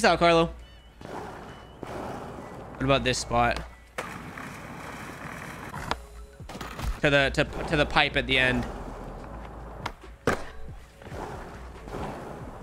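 Skateboard wheels roll steadily over concrete.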